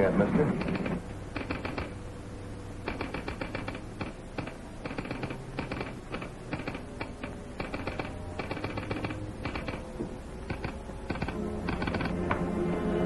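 A typewriter clacks in quick bursts.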